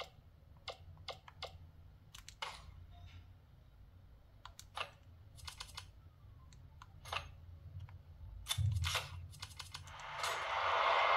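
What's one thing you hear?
Short menu beeps and clicks sound from a small game console speaker.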